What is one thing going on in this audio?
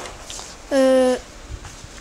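A hand rustles a crumpled paper sheet.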